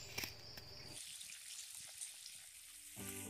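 A pot of broth bubbles over a fire.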